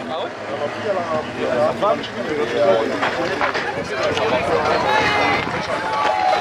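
A crowd of men and women shout and call out excitedly outdoors.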